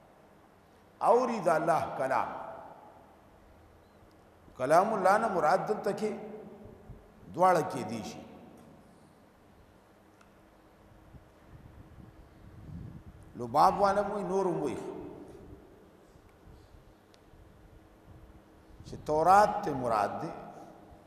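An elderly man speaks slowly into a microphone, in short phrases with long pauses.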